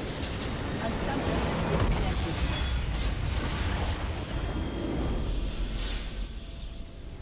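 A large structure explodes with a deep rumbling boom.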